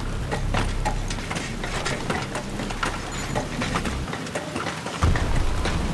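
Boots clank on the rungs of a metal ladder.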